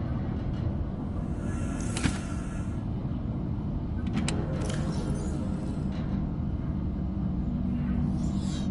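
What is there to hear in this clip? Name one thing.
A low underwater rumble drones steadily.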